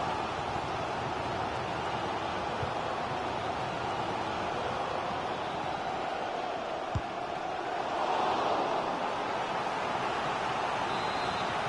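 A stadium crowd roars steadily, swelling louder for a moment.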